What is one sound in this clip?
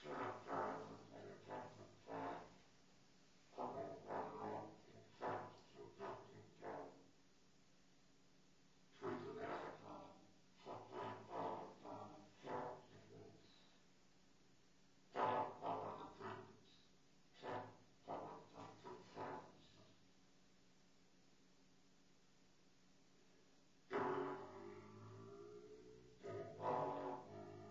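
A muted trumpet plays short bursts of notes in quick phrases separated by pauses.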